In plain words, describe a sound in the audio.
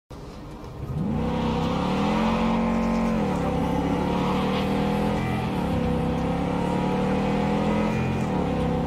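A car engine revs up, rising and falling as the car accelerates and shifts gears.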